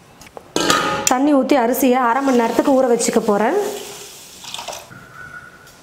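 Water pours and splashes into a metal pot.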